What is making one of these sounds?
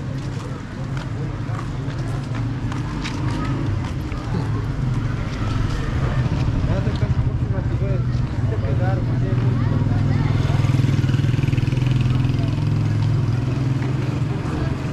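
Men and women murmur and talk in a crowd nearby.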